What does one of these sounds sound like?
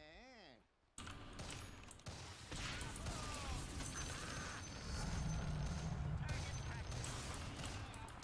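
Game spells and attacks crackle and boom in a fight.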